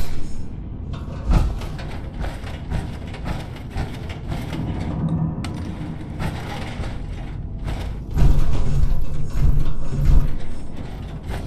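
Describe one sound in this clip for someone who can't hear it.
Heavy metal footsteps clank on a hard floor.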